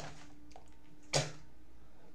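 A hand bumps against a microphone with a thud.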